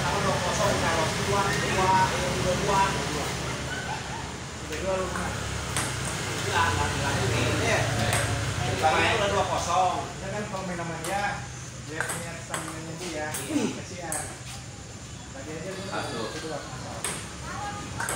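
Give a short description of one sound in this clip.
Several men talk and call out nearby.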